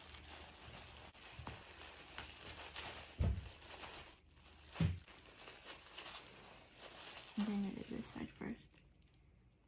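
A cloth scrubs against a carpet.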